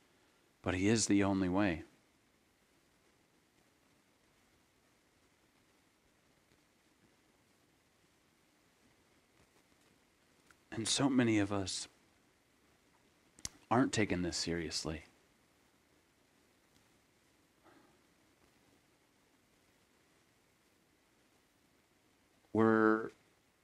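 A man speaks calmly and close to a microphone, in short bursts with long pauses.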